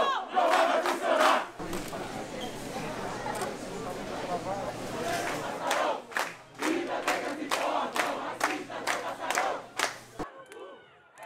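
A large crowd chants loudly in unison.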